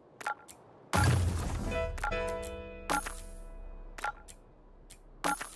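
A bright chime rings out as a level-up jingle plays.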